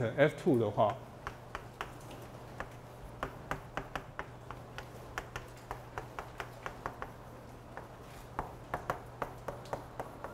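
Chalk taps and scrapes on a blackboard.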